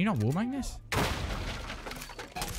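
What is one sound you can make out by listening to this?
A door is kicked open with a loud bang.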